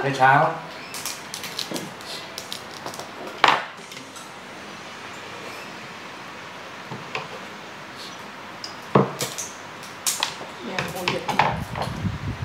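Chopsticks and spoons clink against bowls and dishes.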